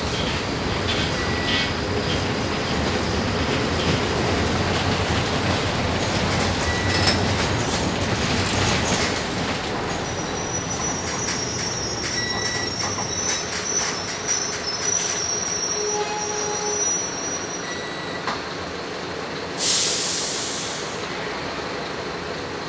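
Bus fittings rattle and click.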